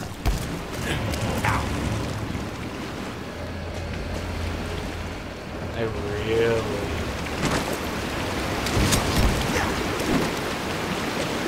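Game sounds of clashing blows and thuds play over a low rumble.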